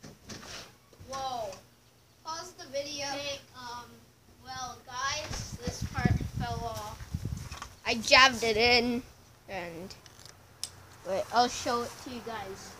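A young boy talks excitedly and close by.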